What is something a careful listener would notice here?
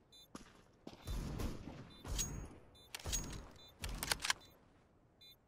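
Footsteps thud on hard ground.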